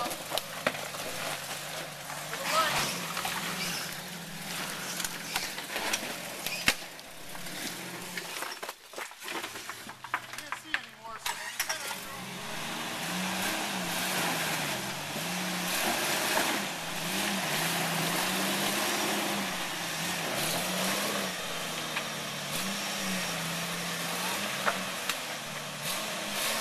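An off-road vehicle's engine idles and revs unevenly as it crawls.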